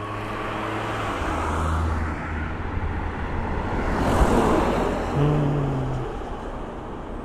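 A minibus engine hums as it passes close by, rising and then fading.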